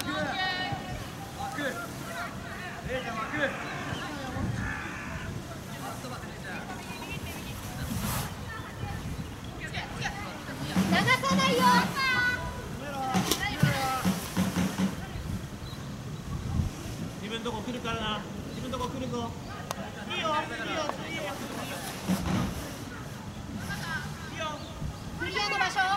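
Young players shout and call to each other across an open outdoor field.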